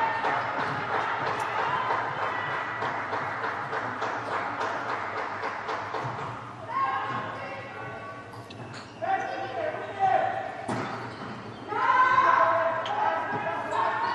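Young women shout and call out in a large echoing hall.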